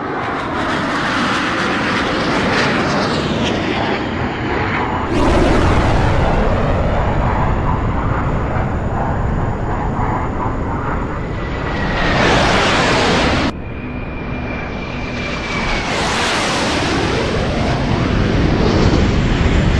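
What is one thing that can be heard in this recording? Jet engines roar loudly.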